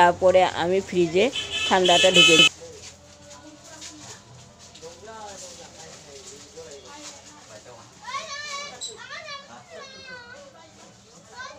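A woman talks nearby, calmly.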